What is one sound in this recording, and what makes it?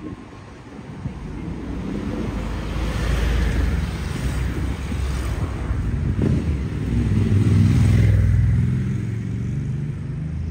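Cars and a truck drive past close by on a street.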